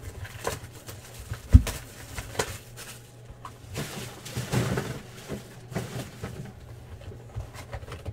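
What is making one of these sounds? A cardboard box is handled and tapped on a table.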